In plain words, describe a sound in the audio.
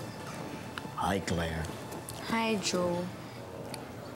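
A young woman speaks softly and playfully nearby.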